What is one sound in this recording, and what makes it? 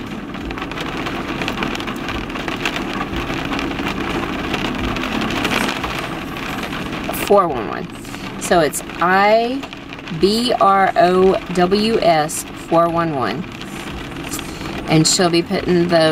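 Rain patters on a car roof.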